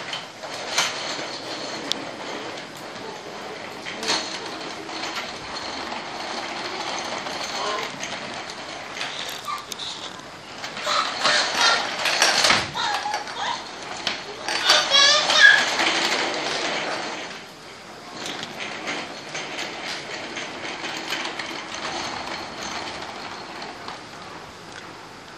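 Plastic wheels of a baby walker roll and rattle across a wooden floor.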